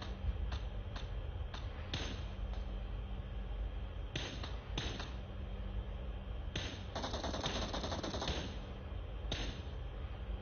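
Rifle shots crack out one after another.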